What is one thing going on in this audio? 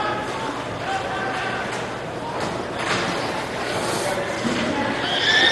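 Young players call out across a large echoing rink.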